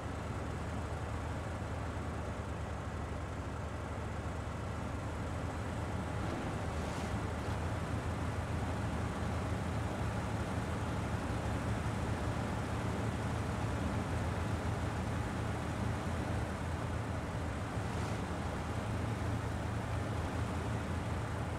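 A heavy truck engine rumbles and labours steadily.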